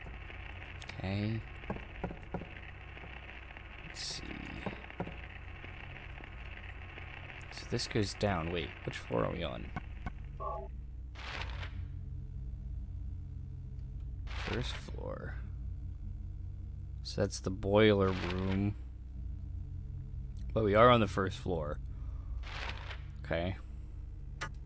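A man speaks close to a headset microphone.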